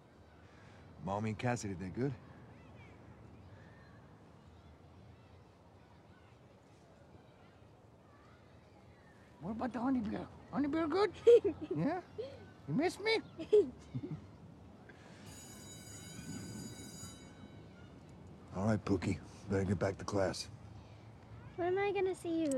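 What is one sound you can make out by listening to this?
A young girl speaks quietly.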